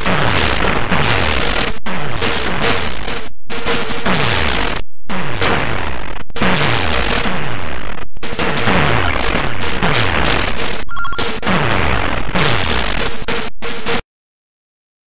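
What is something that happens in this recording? Video game explosions and laser shots blast rapidly and noisily.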